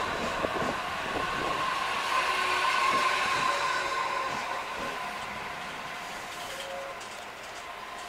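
An electric train pulls out and rolls away with a fading whine.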